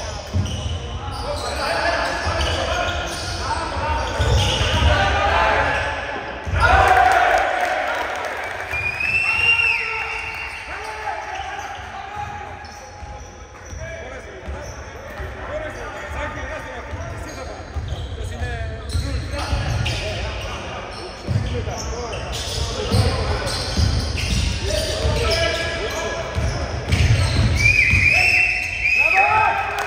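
Spectators and players shout and call out in an echoing hall.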